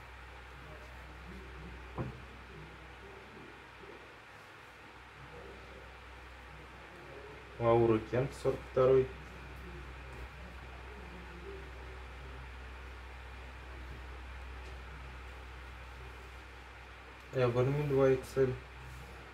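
Fabric rustles softly as clothes are laid on a pile.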